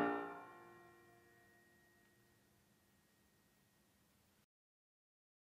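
A piano's final chord rings out and slowly fades in an echoing hall.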